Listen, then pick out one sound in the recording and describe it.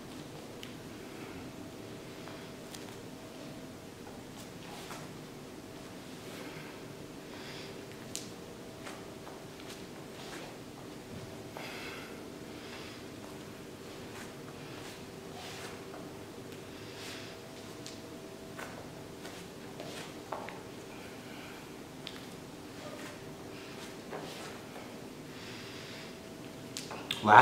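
Bare hands and feet thump and shuffle softly on a mat.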